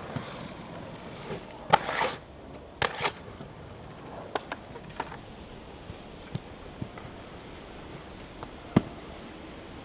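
A skate frame scrapes along a ledge.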